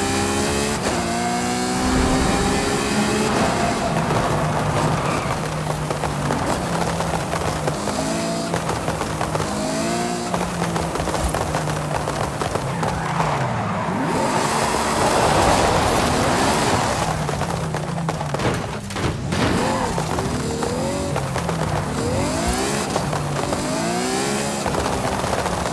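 A sports car engine roars and revs up and down throughout.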